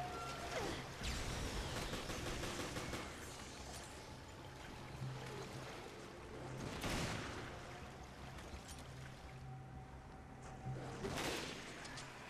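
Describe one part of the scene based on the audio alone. Gunshots ring out sharply and echo.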